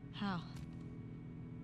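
A young woman asks a short question quietly.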